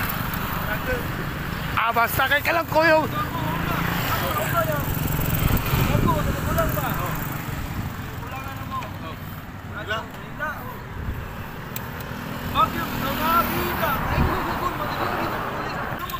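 An adult man talks with animation close to the microphone.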